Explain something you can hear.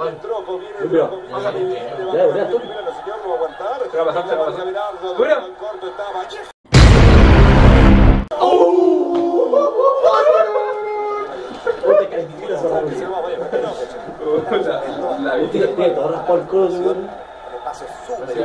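Young men talk excitedly nearby.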